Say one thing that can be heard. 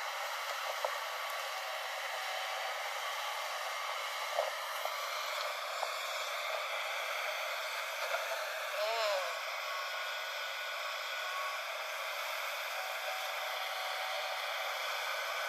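An excavator bucket splashes into muddy water.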